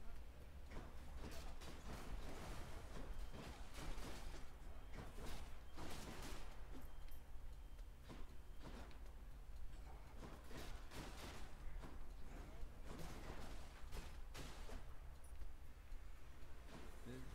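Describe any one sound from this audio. Sword slashes and fiery blasts crack in quick bursts.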